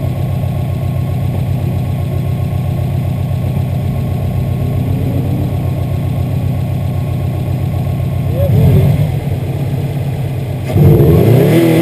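A car engine idles steadily nearby.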